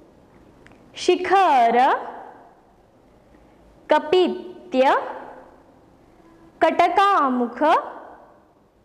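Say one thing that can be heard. A young woman sings melodic phrases close to a clip-on microphone, with pauses between them.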